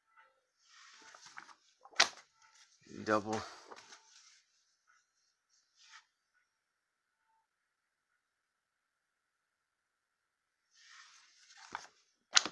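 Paper rustles and slides as a comic book is handled.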